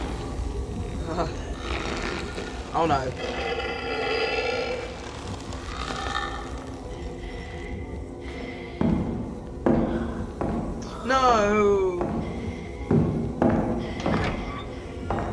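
A teenage boy talks into a nearby microphone.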